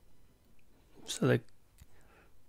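A man makes a short, sudden vocal sound close to a microphone.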